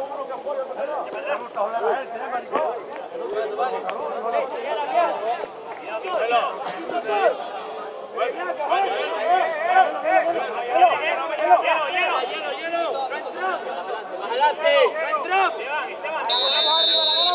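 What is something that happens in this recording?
Men shout to each other from a distance outdoors.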